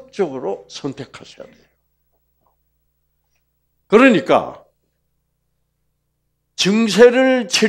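An elderly man speaks with animation through a clip-on microphone, pausing between phrases.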